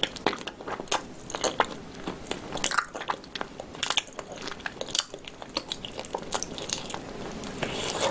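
A young woman chews crispy food loudly and wetly, close to a microphone.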